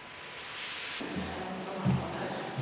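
Footsteps approach on a hard floor.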